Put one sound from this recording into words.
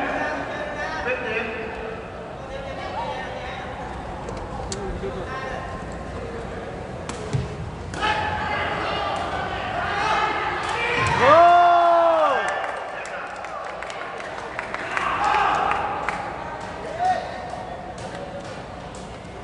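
A large crowd murmurs in an echoing indoor hall.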